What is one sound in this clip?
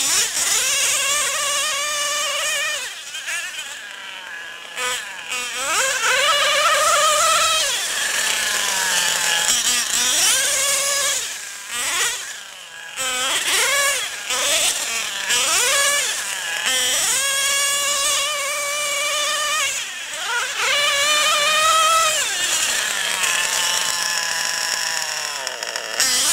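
A small model car engine whines loudly, revving up and down as it races past.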